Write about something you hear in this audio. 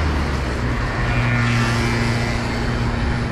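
A motorbike engine hums as it passes.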